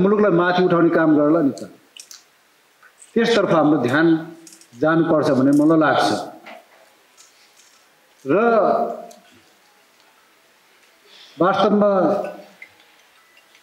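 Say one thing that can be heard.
A middle-aged man speaks slowly and deliberately into a microphone, in short phrases with pauses.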